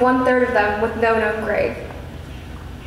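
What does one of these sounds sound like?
A young girl sings a held note through loudspeakers in a large echoing hall.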